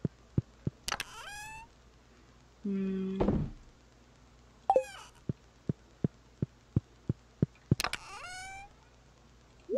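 Short game chimes and clicks sound as menus open and close.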